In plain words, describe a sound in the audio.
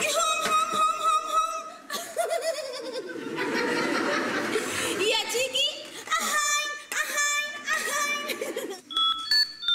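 A young woman speaks with animation, heard through a microphone.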